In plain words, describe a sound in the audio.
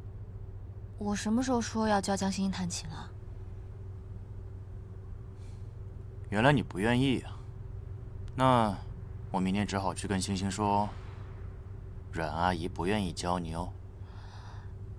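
A young man speaks casually and close by.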